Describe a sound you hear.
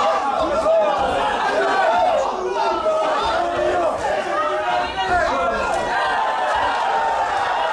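Kickboxing gloves thud against bodies during an exchange of blows.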